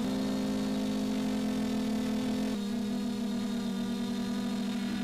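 Drone propellers whine with a steady high buzz that shifts slightly in pitch.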